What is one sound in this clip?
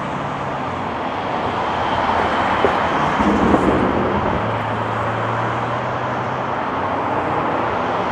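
Cars rumble along the road below.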